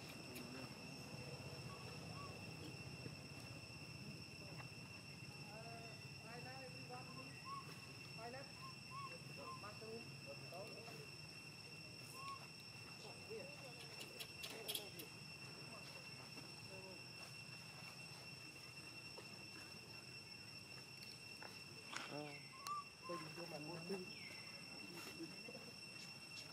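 A baby monkey whimpers and squeals close by.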